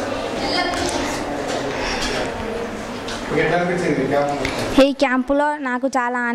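A teenage girl speaks through a microphone in an echoing room.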